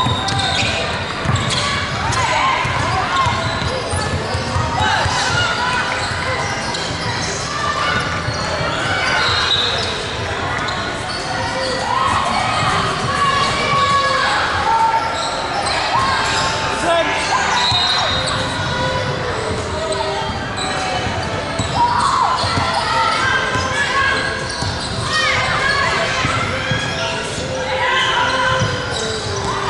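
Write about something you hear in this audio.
Young girls talk and call out across an echoing hall.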